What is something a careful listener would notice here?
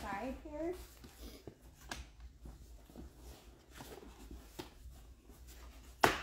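A fabric mattress rustles as it is lowered into place.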